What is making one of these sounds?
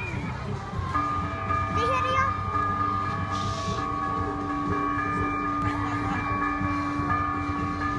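Church bells ring out loudly with a long, humming ring.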